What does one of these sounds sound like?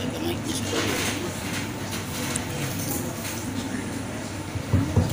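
A man speaks calmly through a microphone in an echoing hall.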